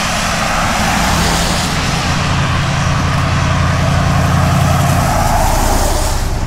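A pickup truck's engine rumbles as it draws near.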